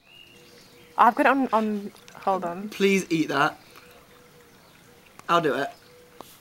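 A young woman speaks close by, with animation.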